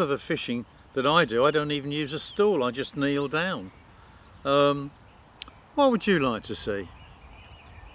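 An elderly man talks with animation close to a microphone, outdoors.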